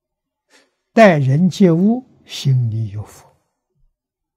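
An elderly man speaks calmly and warmly into a microphone.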